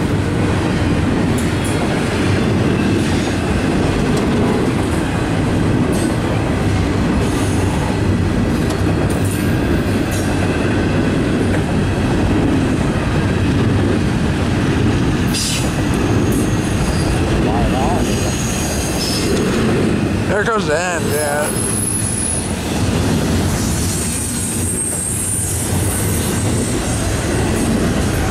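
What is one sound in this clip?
A long freight train rumbles steadily past up close.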